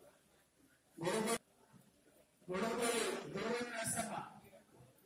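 A man speaks into a microphone, heard through a loudspeaker.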